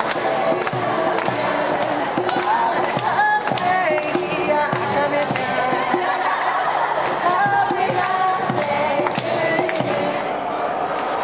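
A violin plays a lively tune in a large echoing hall.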